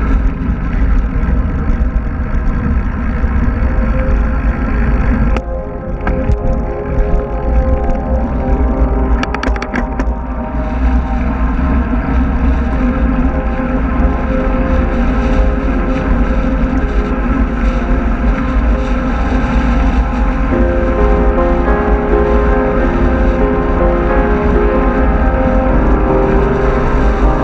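Bicycle tyres hum on smooth asphalt.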